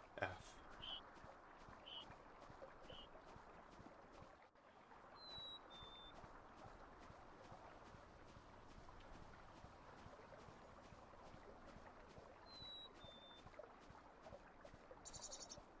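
Water flows steadily in a stream.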